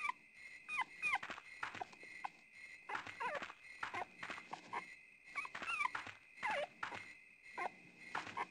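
Footsteps walk along a dirt path.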